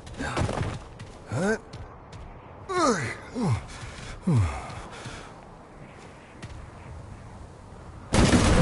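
Footsteps crunch over rocky ground.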